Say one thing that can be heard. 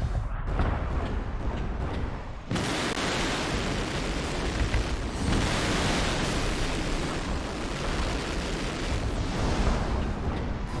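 Heavy metal footsteps thud and clank.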